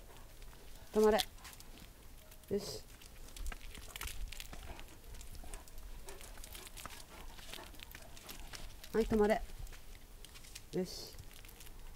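A dog whines briefly.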